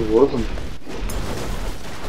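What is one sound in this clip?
An explosion bursts with a roar.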